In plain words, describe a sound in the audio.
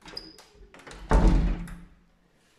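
A door handle clicks as it is pressed down.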